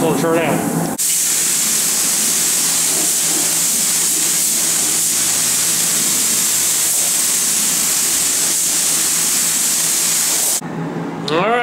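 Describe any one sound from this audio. A compressed-air spray gun hisses as it sprays paint.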